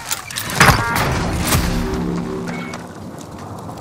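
A game chime sounds as points are awarded.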